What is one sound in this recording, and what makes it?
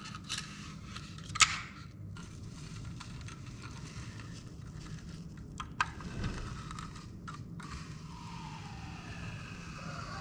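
A power tool buzzes steadily as its blade cuts into a wall.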